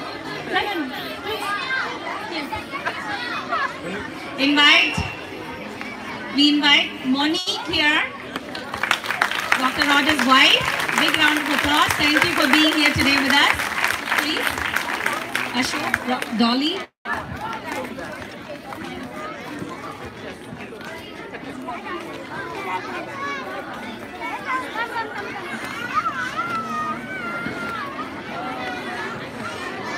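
A crowd of people chatter and call out outdoors.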